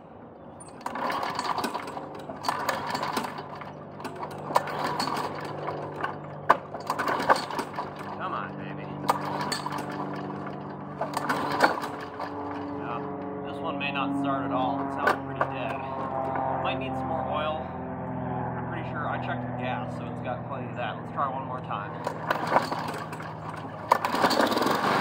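A man yanks a lawn mower's pull cord with a rasping whir.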